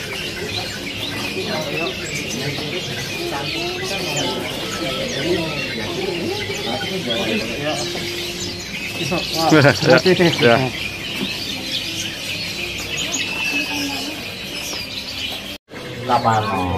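Many small birds chirp and twitter all around.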